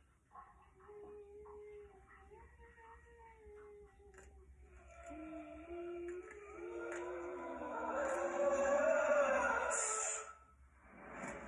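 Eerie music with a high, wavering melody plays and swells.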